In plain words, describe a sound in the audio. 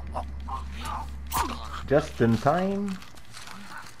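A knife stabs into flesh with wet thuds.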